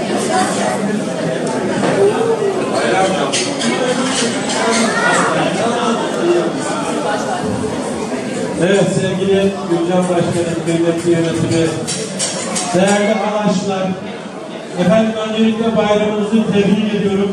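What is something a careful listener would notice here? A man sings loudly through a microphone and loudspeakers in an echoing hall.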